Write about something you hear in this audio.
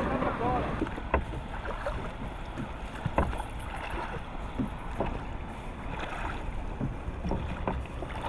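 Oars splash in water.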